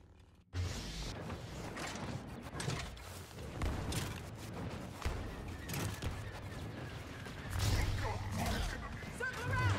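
Blaster shots crack and zap in quick bursts.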